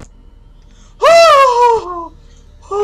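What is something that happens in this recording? A boy screams into a close microphone.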